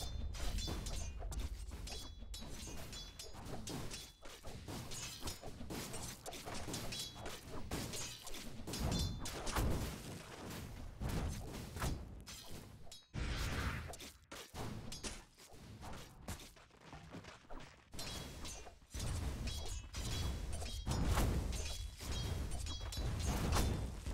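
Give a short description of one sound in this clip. Blows and clashing weapons ring out in a fast battle.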